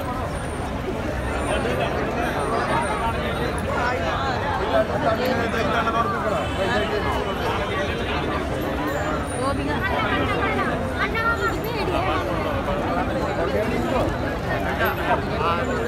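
Men talk and call out close by, with animation.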